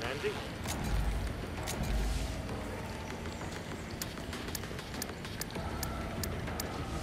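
Short electronic menu clicks tick one after another.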